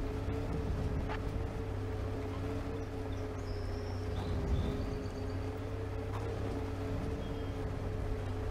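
A bus engine hums steadily as it drives along a rough road.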